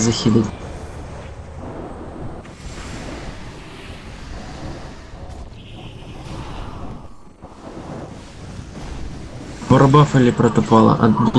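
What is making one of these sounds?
Magic blasts and weapon clashes ring out in a busy fight.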